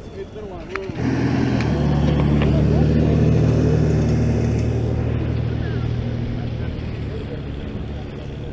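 A vehicle engine rumbles loudly as it passes close by and fades away.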